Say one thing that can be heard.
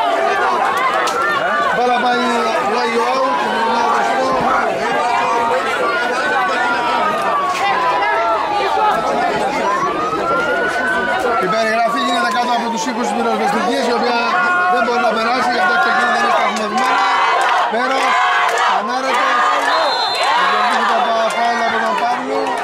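A crowd of spectators chatters nearby.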